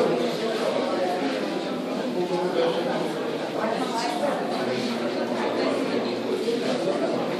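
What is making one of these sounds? Many people talk at once in an echoing hall.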